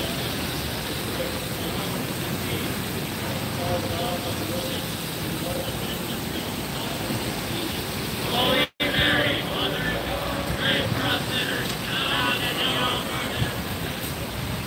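Car tyres hiss on a wet street as cars pass.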